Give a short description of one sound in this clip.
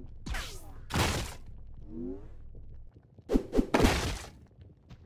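Wooden boards crack and splinter.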